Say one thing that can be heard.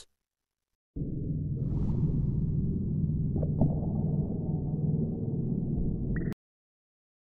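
Water rumbles and gurgles deep and muffled underwater.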